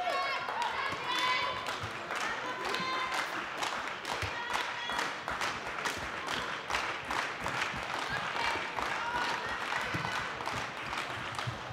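Sneakers squeak sharply on a hall floor.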